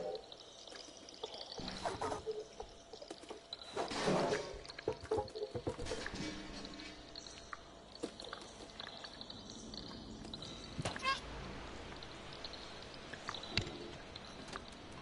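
A cat's paws patter softly on wooden planks and sheet metal.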